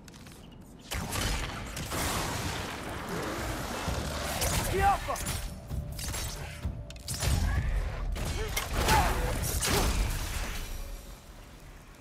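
Blades clash and strike in a loud fight.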